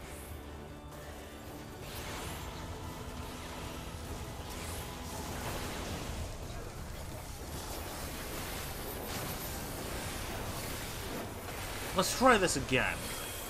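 Fantasy battle sound effects clash and whoosh.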